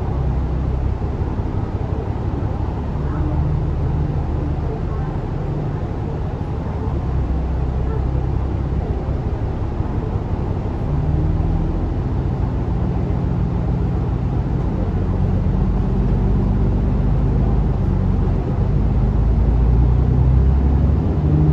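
The bus rattles softly as it rolls along the road.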